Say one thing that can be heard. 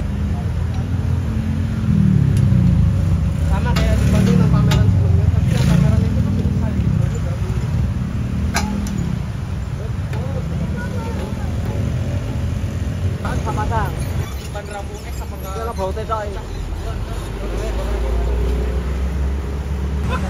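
Metal clanks and taps as a tool works on a signal post.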